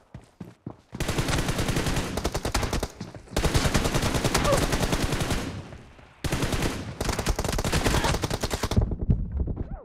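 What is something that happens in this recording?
A rifle fires in rapid bursts of gunshots.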